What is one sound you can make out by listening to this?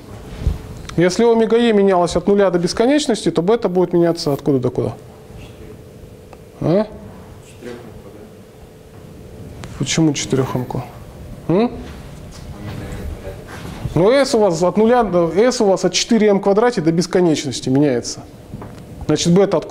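A man speaks in an explaining tone, with pauses, in a room with some echo.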